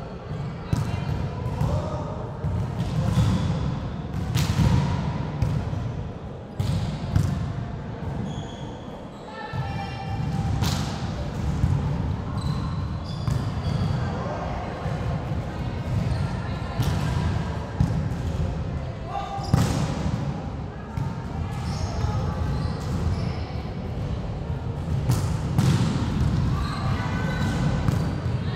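A volleyball is hit with sharp smacks in a large echoing hall.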